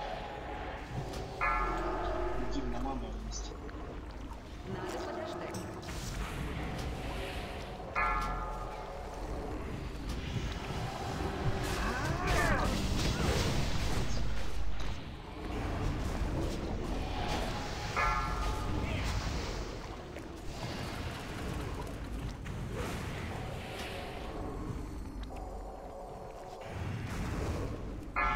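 Fantasy combat sound effects clash, whoosh and boom.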